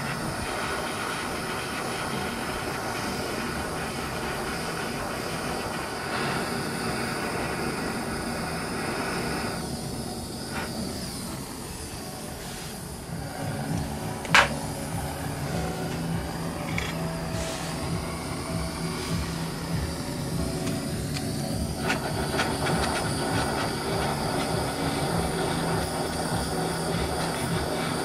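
A gas torch flame roars steadily.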